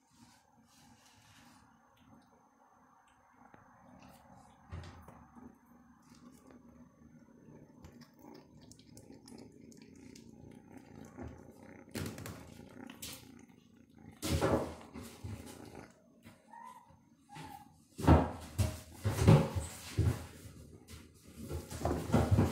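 A kitten chews and tears at a dead rat up close, with wet crunching sounds.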